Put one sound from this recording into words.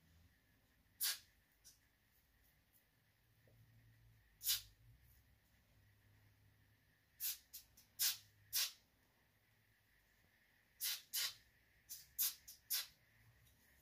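A spray can hisses in short, sharp bursts close by.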